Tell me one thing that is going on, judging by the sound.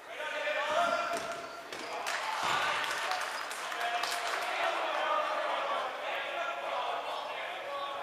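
Many young voices chatter and shout in a large echoing gym.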